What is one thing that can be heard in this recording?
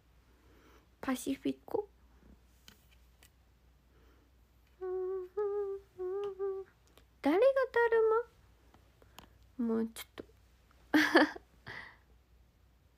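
A young woman speaks softly in short bursts, close by.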